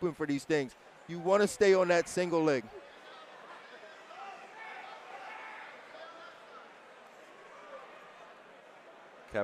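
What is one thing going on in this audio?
A crowd murmurs and calls out in a large hall.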